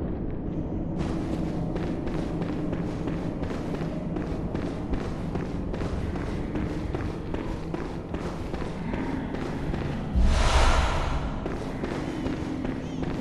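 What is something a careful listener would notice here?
Footsteps run quickly across a stone floor in an echoing hall.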